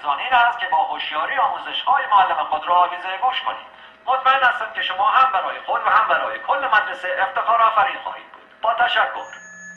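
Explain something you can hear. A man speaks calmly through a small loudspeaker.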